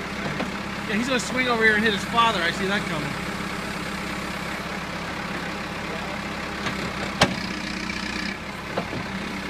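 A tractor engine idles with a steady rumble.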